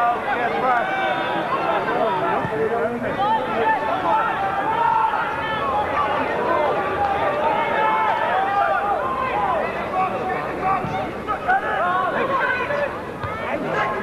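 A football crowd shouts and cheers in the open air.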